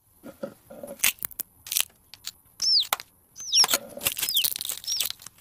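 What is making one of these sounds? Eggs knock together and their shells crack on a metal surface.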